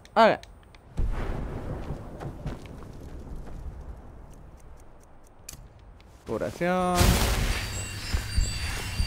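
A magic spell crackles and roars.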